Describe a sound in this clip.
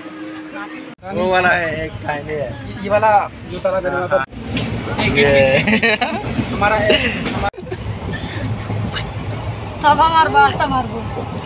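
A small child babbles in a high voice close by.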